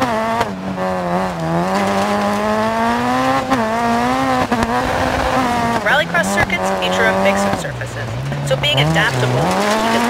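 A rally car engine revs loudly, its pitch rising and dropping with gear changes.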